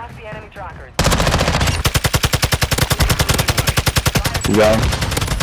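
An automatic rifle fires a rapid, steady burst of shots.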